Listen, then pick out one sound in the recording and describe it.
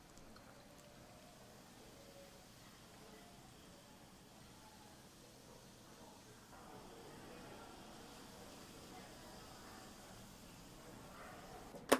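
Fizzy soda pours into a cup.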